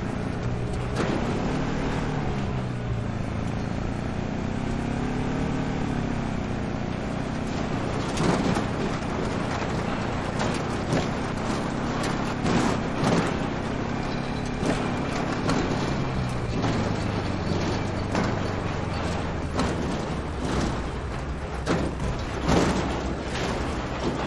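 A truck's wheels crunch and bump over a dirt track.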